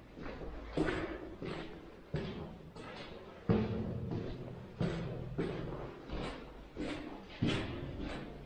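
Footsteps thud up hard stairs in an echoing stairwell.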